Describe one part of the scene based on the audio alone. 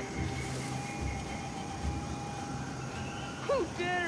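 Leaves rustle as someone moves through a bush.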